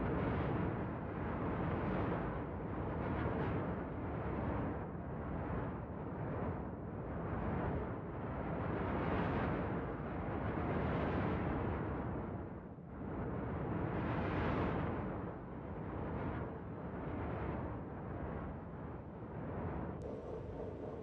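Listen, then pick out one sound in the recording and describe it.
A spacecraft's engines roar loudly, surging and easing in waves.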